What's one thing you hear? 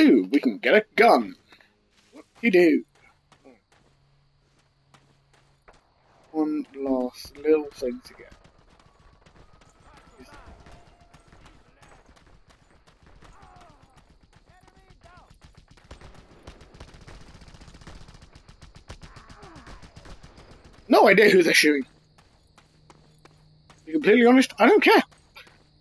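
A young man talks loudly and excitedly into a close microphone, in short bursts.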